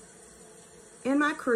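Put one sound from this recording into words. A woman speaks close to the microphone, briefly and with animation.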